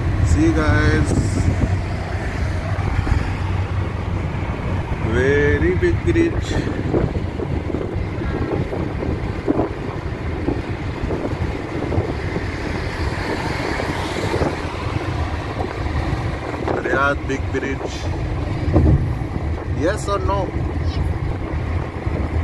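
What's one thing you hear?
A car's engine and tyres hum steadily on a road.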